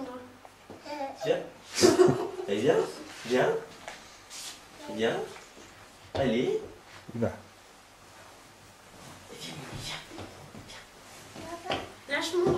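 A toddler babbles.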